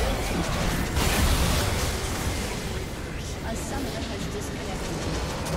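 A structure explodes and crumbles.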